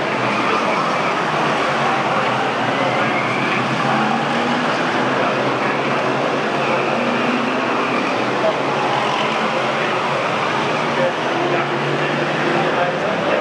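Racing car engines roar loudly as cars race around a track.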